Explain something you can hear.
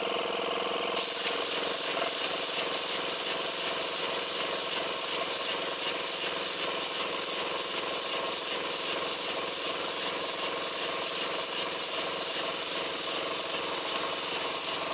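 A small model engine chuffs rhythmically as compressed air puffs through it.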